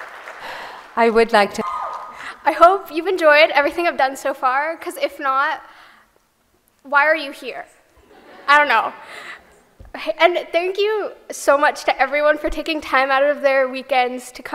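A young woman speaks clearly into a microphone in a large hall.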